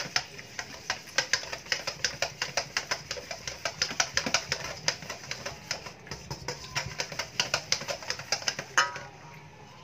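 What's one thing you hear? A wire whisk rapidly clatters against a metal bowl.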